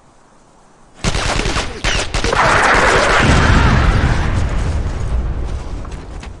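A rocket launcher fires with a loud blast and a long, deep rumble.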